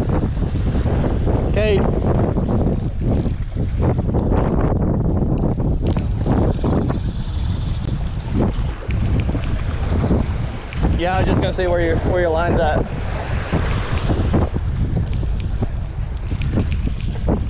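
Waves splash against rocks close by.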